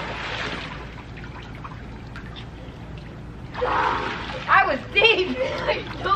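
Water splashes as swimmers move in a pool.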